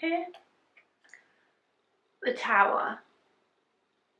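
A woman speaks close by, calmly and clearly.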